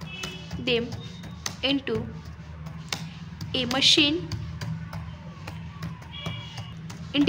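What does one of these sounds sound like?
Computer keys click as someone types.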